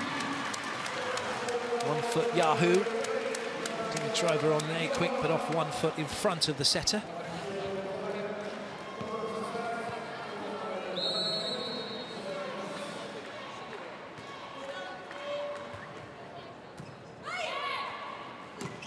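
A large crowd cheers and claps in an echoing arena.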